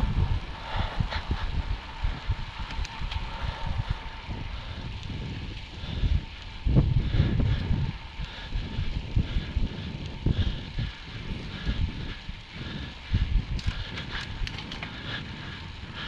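Wind rushes and buffets against a microphone, outdoors.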